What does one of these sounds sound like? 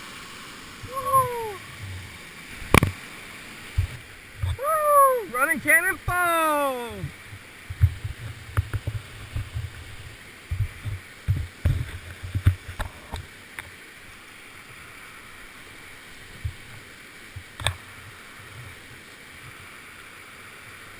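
Whitewater rapids rush over rock.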